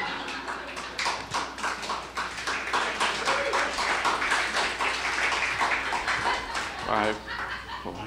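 An audience claps in a hall.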